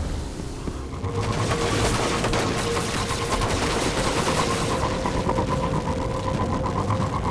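A hover bike engine hums and whooshes steadily.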